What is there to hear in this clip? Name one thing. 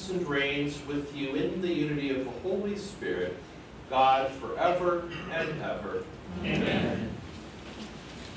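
A man chants and speaks aloud.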